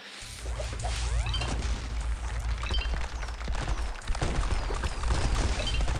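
Short bright chiming game sound effects ring out several times.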